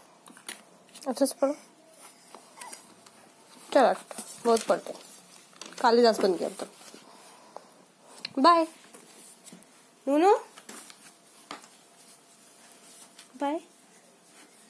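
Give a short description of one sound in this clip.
A toddler vocalizes close by.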